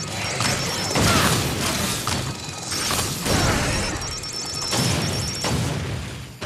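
Explosions boom loudly as shots hit a giant machine.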